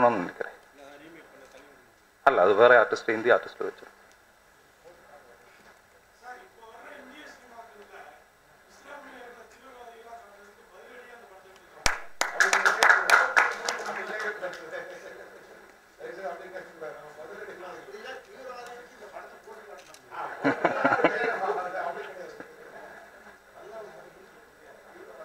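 A man speaks into a microphone through loudspeakers.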